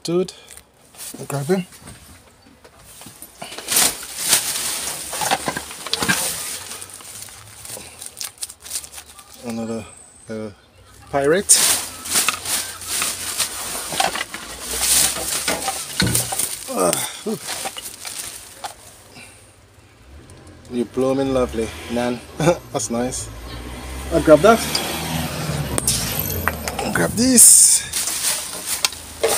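Plastic bags crinkle and rustle as they are pushed around.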